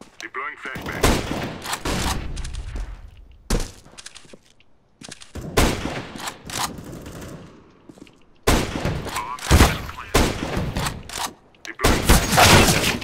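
A sniper rifle fires loud, sharp shots with a booming echo.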